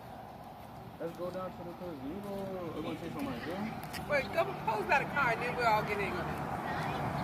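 Young people talk and laugh nearby.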